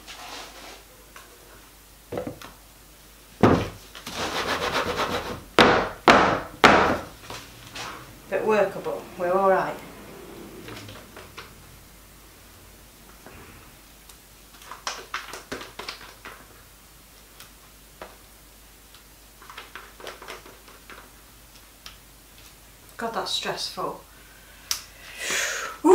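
Thick batter plops softly into a mould.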